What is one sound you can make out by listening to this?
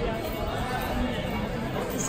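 A crowd of people chatters nearby on a busy street.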